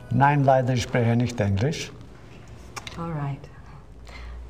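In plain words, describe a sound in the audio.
An elderly man speaks calmly and slowly.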